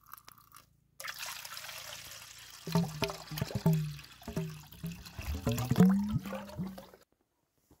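Water pours from a bamboo tube into a metal pot, splashing loudly.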